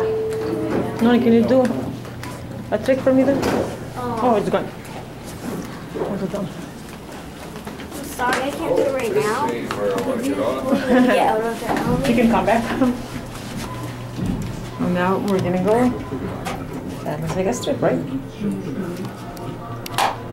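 Young girls talk and chatter excitedly close by.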